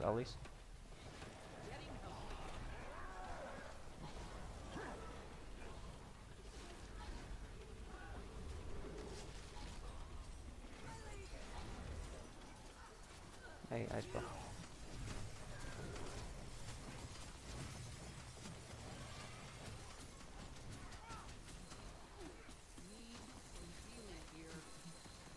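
Magic spells whoosh and crackle in a game fight.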